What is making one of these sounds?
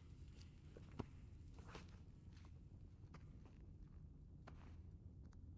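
Footsteps walk on a hard floor.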